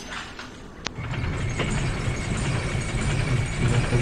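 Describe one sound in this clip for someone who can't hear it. A heavy lift rumbles and clanks as it moves on its chains.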